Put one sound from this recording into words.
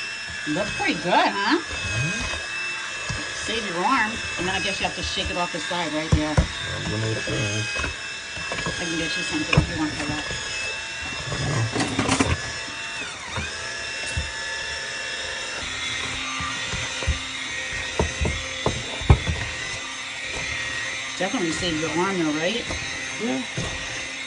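A hand blender knocks against a metal pot.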